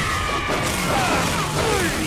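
An energy weapon fires with a loud burst.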